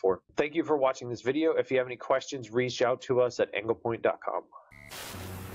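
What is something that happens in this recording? A young man speaks calmly and steadily into a close microphone.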